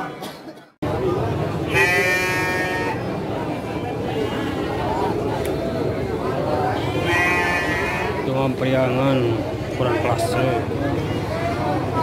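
Men talk among a bustling crowd.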